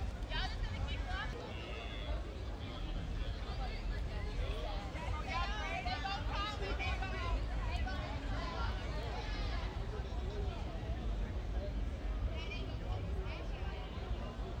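A crowd of young men and women chatters and calls out nearby outdoors.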